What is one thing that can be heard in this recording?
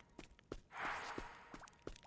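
A game character strikes blocks with sharp thuds.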